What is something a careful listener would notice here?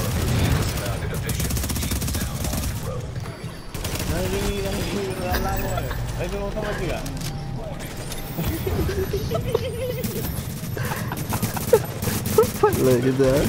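Rapid gunfire bursts crack in short volleys.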